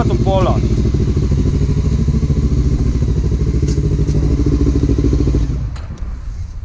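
A quad bike engine idles with a loud, steady rumble close by, then cuts out.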